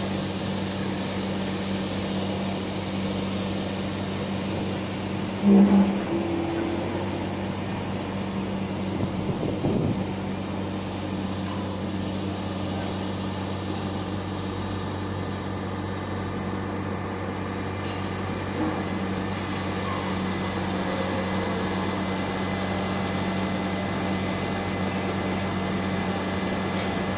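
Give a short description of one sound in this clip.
Heavy construction machinery engines drone steadily in the distance.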